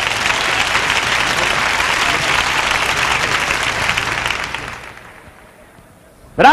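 A crowd applauds loudly in a large echoing hall, then the applause fades.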